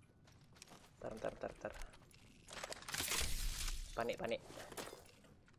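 A young woman talks casually into a microphone.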